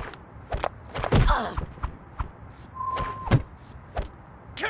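Punches thud and smack in a brief fight.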